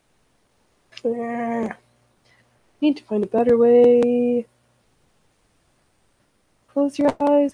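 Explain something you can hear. A woman speaks calmly and close to a microphone, in short phrases.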